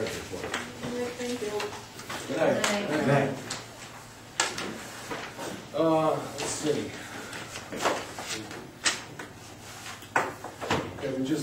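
A man speaks calmly in a room with a slight echo, heard from across the room.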